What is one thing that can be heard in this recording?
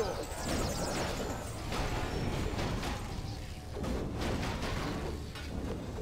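Weapons clash and strike repeatedly in a fantasy game battle.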